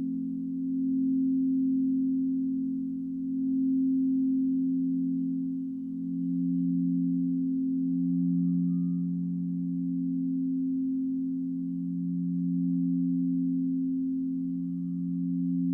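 Crystal singing bowls hum with deep, steady, swelling tones.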